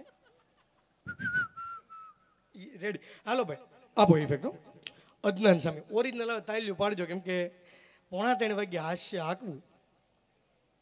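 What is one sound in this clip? A man sings with feeling into a microphone, heard through loudspeakers.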